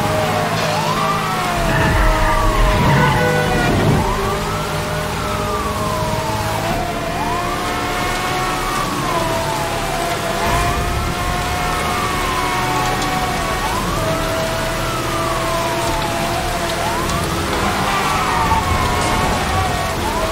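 A car engine roars at high speed.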